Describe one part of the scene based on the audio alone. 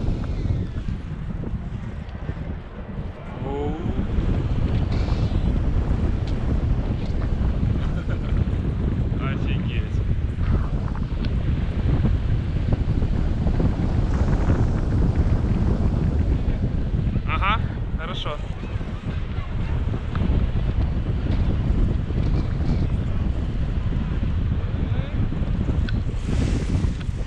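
Wind rushes and buffets loudly against a microphone outdoors.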